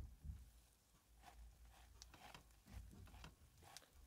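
A spatula scrapes against a metal pan.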